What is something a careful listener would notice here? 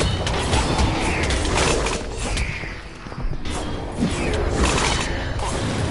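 Video game combat sounds clash and thud rapidly.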